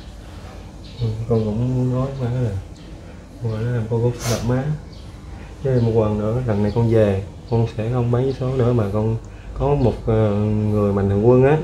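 A young man speaks haltingly close by.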